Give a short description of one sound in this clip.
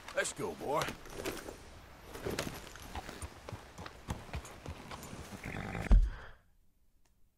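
A horse's hooves thud as it trots and gallops.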